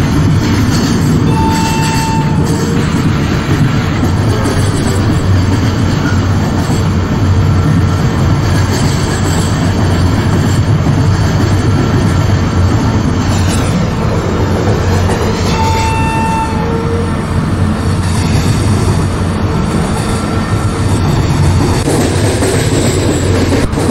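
A locomotive engine rumbles steadily as a train rolls along the tracks.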